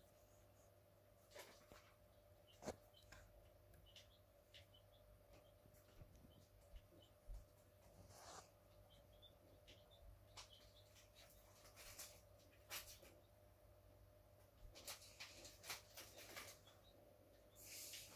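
Plastic parts and wires rustle and click as they are handled.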